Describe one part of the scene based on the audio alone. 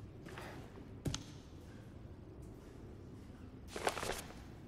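A heavy book thuds and shuffles as it is turned over.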